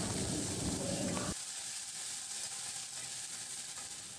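A spoon stirs and scrapes against a metal pot.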